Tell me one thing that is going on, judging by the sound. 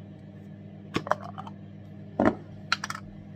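A jar lid is twisted open with a click.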